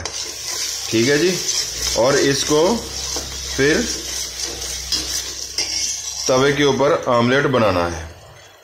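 A metal spoon scrapes around a pot.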